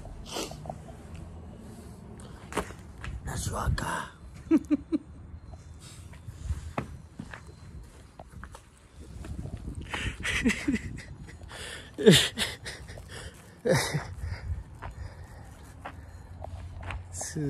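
A middle-aged man talks and laughs cheerfully close to the microphone.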